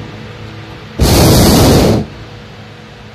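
A balloon burner roars loudly in a short blast.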